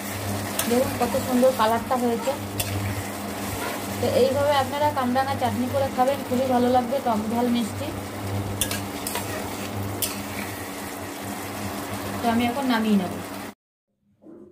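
A thick sauce bubbles and simmers.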